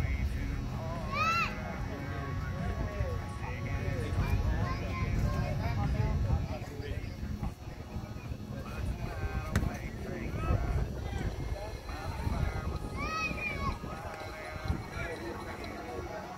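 Several adult players call out and chatter across an open outdoor field at a distance.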